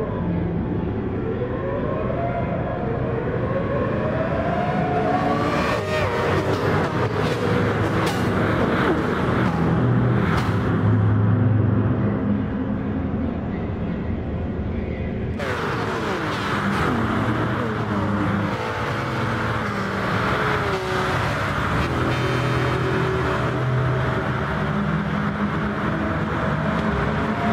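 Racing car engines roar at high revs, rising and falling as cars speed past.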